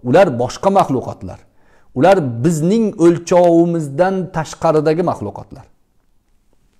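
A middle-aged man speaks with animation close to a clip-on microphone.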